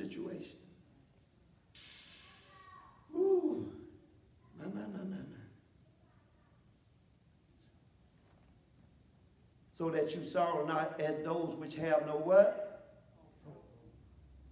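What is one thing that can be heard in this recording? A man speaks slowly and earnestly through a microphone, in a hall with some echo.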